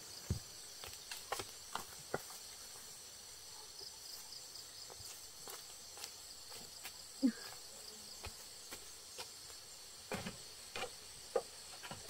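Footsteps patter on the ground outdoors.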